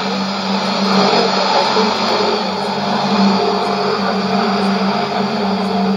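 A shortwave radio hisses with loud static.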